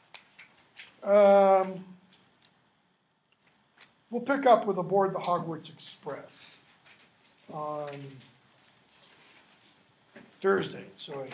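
An older man speaks calmly and close by, in short bursts with pauses.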